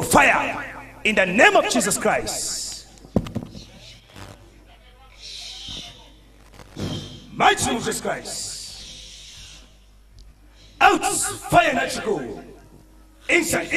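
A man preaches loudly and with fervour into a microphone, in a reverberant hall.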